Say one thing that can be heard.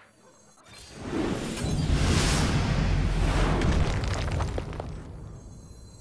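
A game's magic blast crackles and booms.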